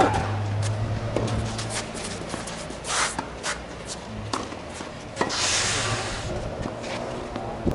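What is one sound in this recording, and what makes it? Sneakers scuff and squeak on the court.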